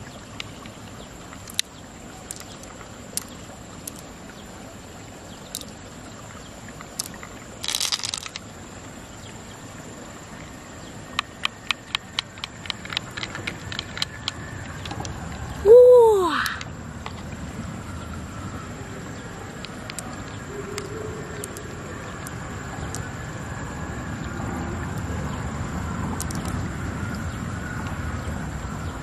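Pearls click softly against each other in a hand.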